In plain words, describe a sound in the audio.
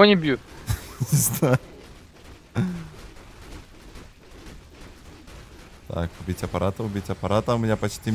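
Magic blasts and weapon strikes crash in a video game battle.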